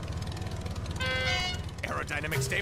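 A bicycle horn honks once.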